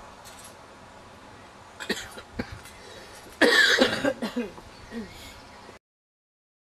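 Men talk and laugh casually outdoors.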